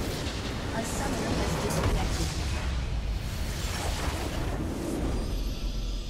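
A huge crystal shatters with a loud boom.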